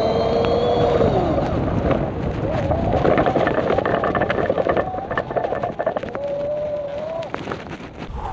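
An electric bicycle motor whines, rising and falling in pitch.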